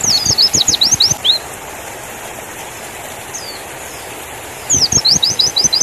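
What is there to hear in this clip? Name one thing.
A small bird sings in rapid, high chirping bursts close by.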